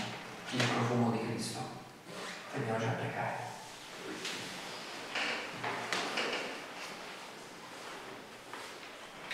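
A middle-aged man speaks calmly through a microphone in an echoing room.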